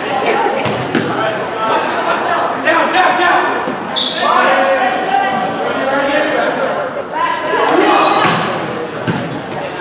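A volleyball is struck with a sharp smack.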